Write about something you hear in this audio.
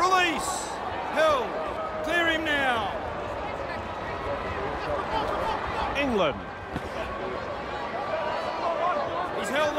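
A large crowd cheers and murmurs steadily in a stadium.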